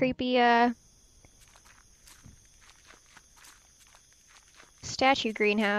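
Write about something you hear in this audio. Footsteps tread softly on the ground.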